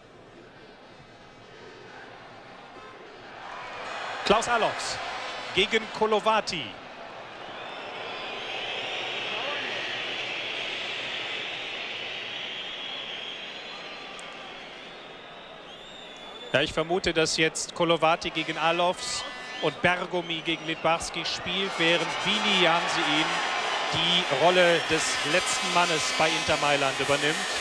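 A large stadium crowd roars and cheers, swelling and then slowly fading.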